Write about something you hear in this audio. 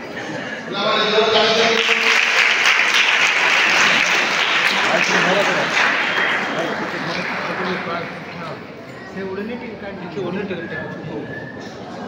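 A man speaks through a microphone and loudspeaker.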